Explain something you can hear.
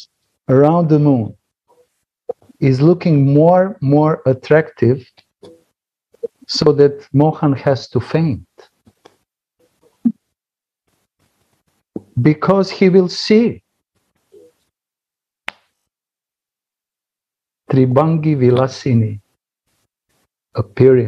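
A middle-aged man talks animatedly through an online call, in bursts with pauses.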